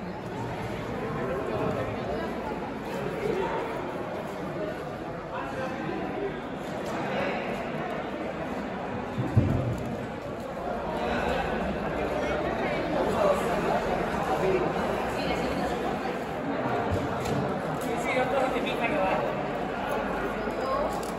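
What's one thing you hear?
A crowd of people murmurs and talks in a large echoing hall.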